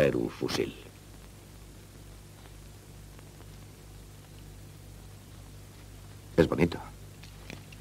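A younger man speaks briefly in reply.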